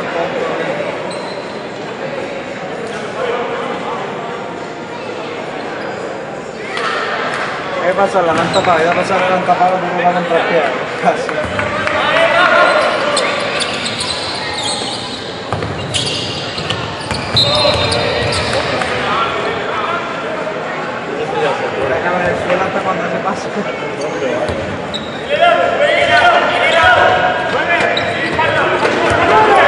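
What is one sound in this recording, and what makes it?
A crowd in a large echoing hall murmurs and cheers.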